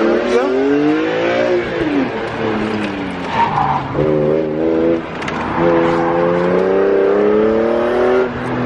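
A BMW E46 M3 straight-six accelerates hard, revving up through the gears.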